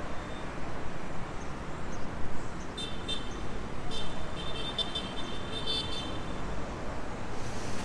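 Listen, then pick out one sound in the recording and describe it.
Traffic hums on a nearby street.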